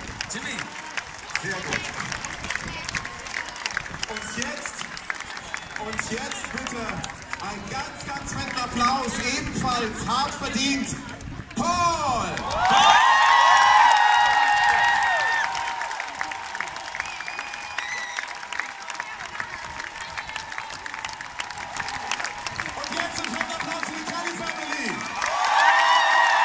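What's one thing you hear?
A large crowd cheers and claps.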